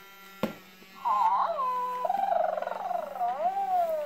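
Electronic toy birds chirp and sing in high, warbling voices.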